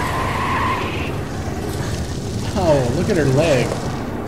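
Flames roar and crackle from a burning wreck.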